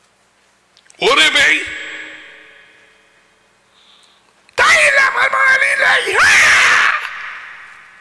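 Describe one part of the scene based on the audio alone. An older man speaks loudly into a microphone, with a strong echo.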